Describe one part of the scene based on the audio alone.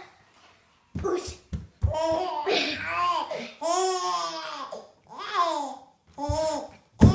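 A young boy laughs and giggles close by.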